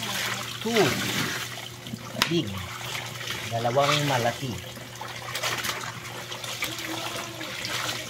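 Wet clothes slosh and splash in water as they are scrubbed.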